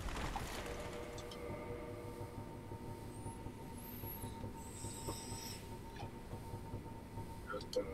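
Menu selections click softly.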